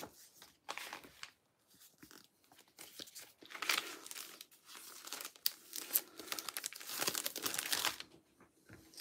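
A plastic sleeve crinkles as cards are slid into it.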